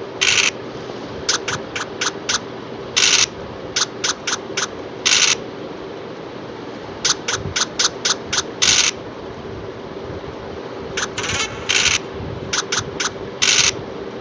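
Game dice rattle briefly as they roll.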